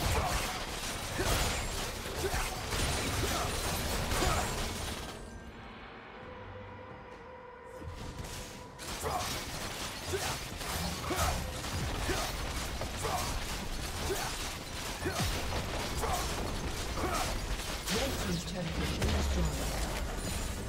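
Video game spell and combat effects crackle and clash rapidly.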